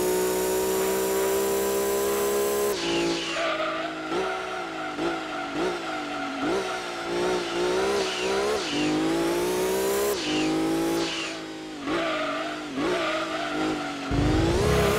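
A racing car engine revs high, rising and dropping as the gears shift.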